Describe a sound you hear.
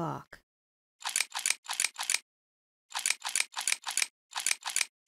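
A metal lock pick scrapes and clicks inside a lock in quick bursts.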